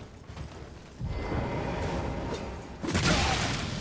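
A magic spell whooshes and shimmers.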